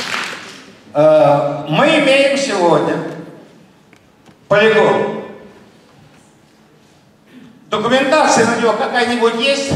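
A man speaks with animation into a microphone over loudspeakers in an echoing hall.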